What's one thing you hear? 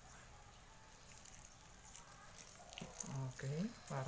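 Liquid pours into a hot pan.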